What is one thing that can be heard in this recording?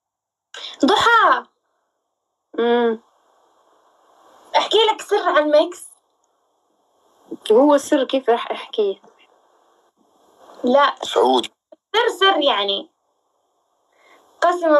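A young man talks animatedly and close into a phone microphone, in short bursts.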